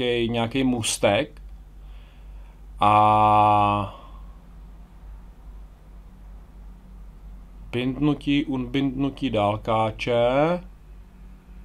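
A middle-aged man talks close to a microphone, in short bursts with pauses.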